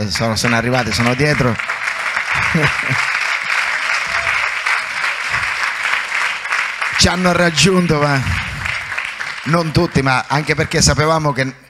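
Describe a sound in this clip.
A man preaches loudly and with passion through a microphone in a large hall.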